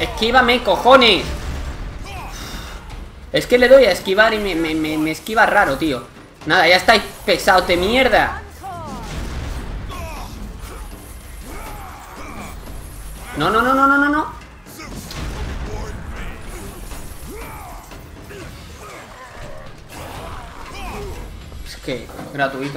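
Chained blades slash and strike repeatedly in a fight.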